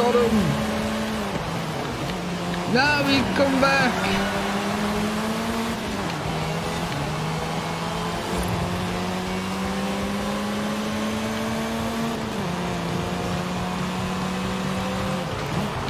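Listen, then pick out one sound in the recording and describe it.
A car engine drones and shifts pitch through gear changes.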